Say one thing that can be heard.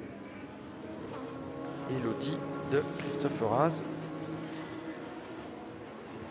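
Racing car engines roar past, rising and falling in pitch.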